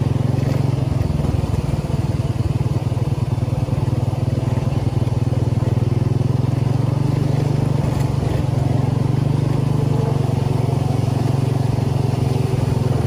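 A small engine drones steadily as a vehicle drives along.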